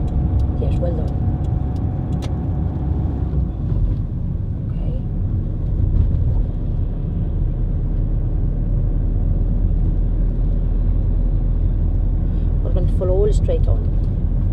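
A car engine hums steadily with road noise as the car drives along.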